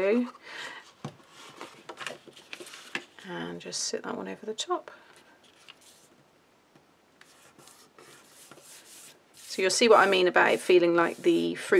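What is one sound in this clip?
Paper rustles and crinkles as hands fold and press it flat.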